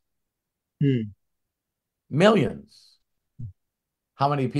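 A second man laughs and speaks cheerfully over an online call.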